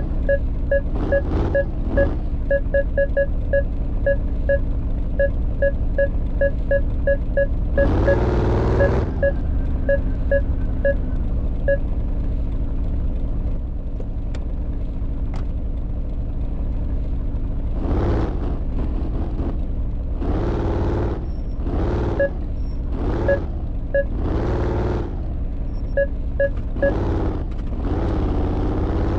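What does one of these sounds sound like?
A car engine hums steadily, revving up now and then.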